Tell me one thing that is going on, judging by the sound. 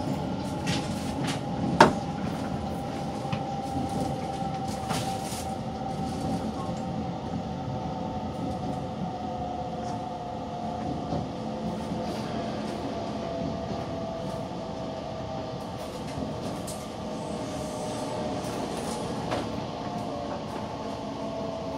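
A train's wheels click and clatter over rail joints.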